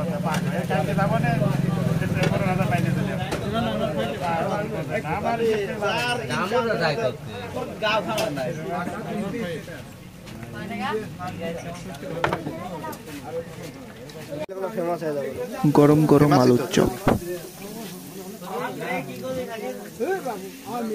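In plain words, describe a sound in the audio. A hand squelches through thick batter.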